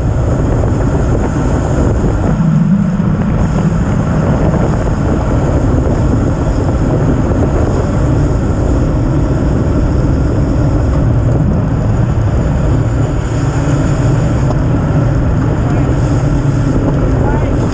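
Bicycle tyres hum on the asphalt.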